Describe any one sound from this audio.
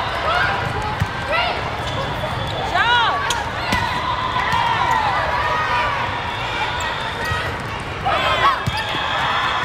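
A volleyball thumps as it is hit.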